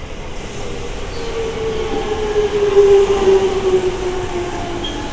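Train wheels squeal on the rails as the train passes.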